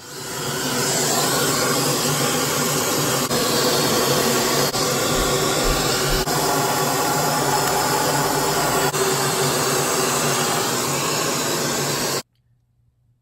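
A vacuum cleaner roars steadily close by, then cuts off.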